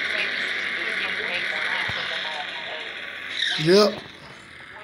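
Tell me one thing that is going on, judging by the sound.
Tyres screech loudly as a car spins its wheels.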